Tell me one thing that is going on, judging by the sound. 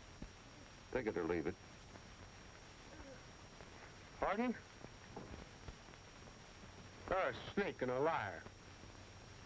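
A man speaks in short phrases nearby.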